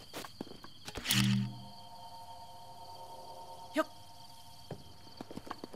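A bright magical chime rings out and fades.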